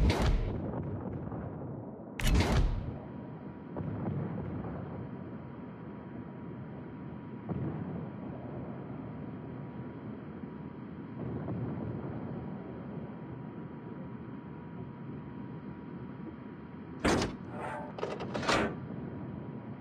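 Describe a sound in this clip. Heavy naval guns fire in loud booming blasts.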